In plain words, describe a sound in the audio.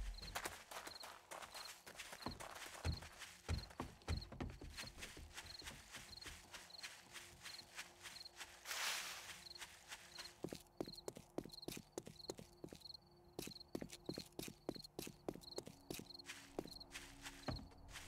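Footsteps run quickly over grass and pavement.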